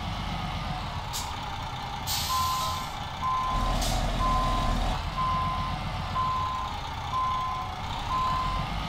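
A heavy truck engine rumbles low and steady.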